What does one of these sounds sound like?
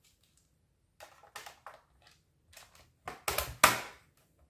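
Hands press and snap a plastic cover into place on a laptop.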